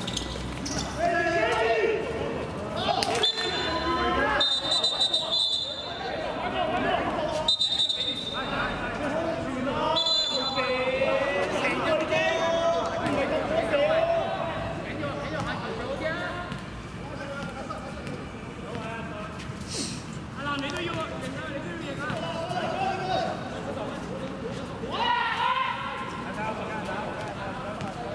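Sneakers squeak and scuff on a hard court.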